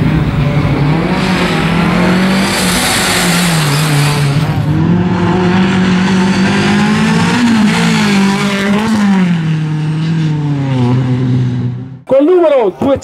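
A rally car engine revs hard and roars past close by.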